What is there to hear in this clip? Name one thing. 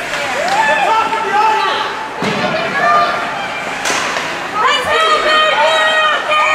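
A crowd of spectators shouts and cheers nearby in a large echoing hall.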